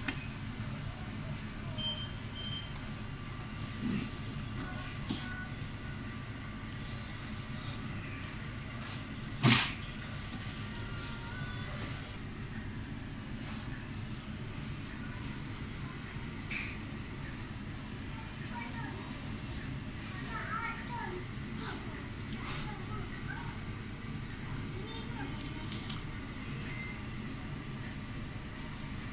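A knife slices through raw fish with soft scraping sounds.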